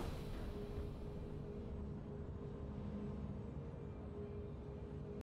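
A triumphant game jingle plays with a steady held tone.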